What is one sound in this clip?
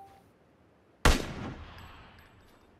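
A single rifle shot cracks and echoes away.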